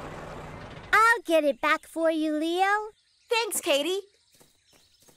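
A young girl speaks with animation in a cartoon voice.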